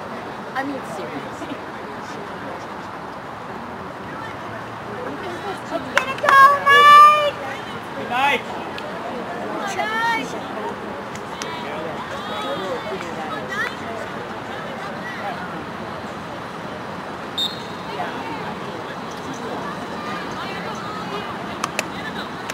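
Hockey sticks click against a ball.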